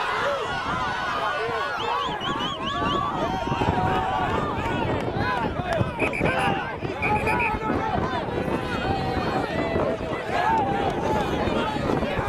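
Young men shout at each other while scuffling.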